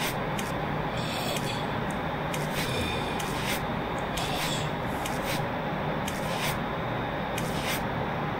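A body drags and scrapes across a hard tiled floor.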